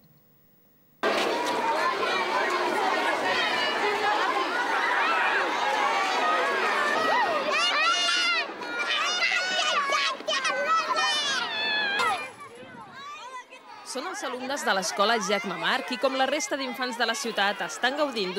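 A crowd of children chatters and shouts outdoors.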